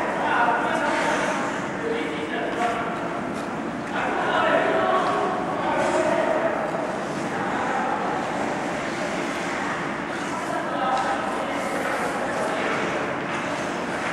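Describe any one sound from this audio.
Hockey skates scrape across ice.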